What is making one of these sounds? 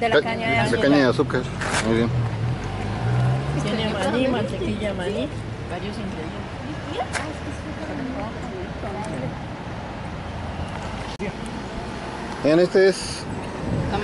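A man and a woman talk nearby with animation.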